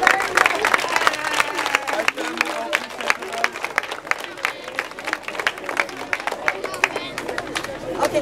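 A crowd of children claps.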